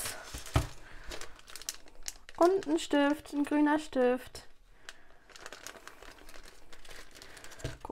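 Plastic packaging crinkles in a hand.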